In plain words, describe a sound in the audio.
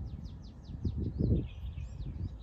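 A golf club strikes a ball with a short, crisp click.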